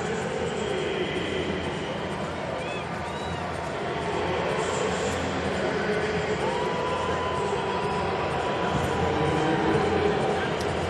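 A large stadium crowd murmurs steadily, heard from afar.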